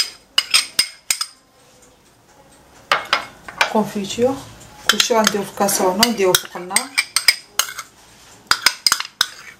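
A glass bowl clinks against a metal pot.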